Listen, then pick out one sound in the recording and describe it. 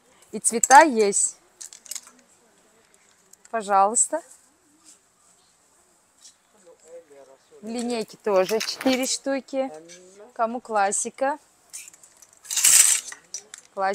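Clothes hangers rattle and slide along a metal rail.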